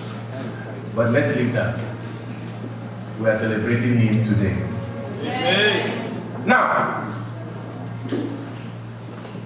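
A young man speaks into a microphone with animation, heard through loudspeakers in a large room.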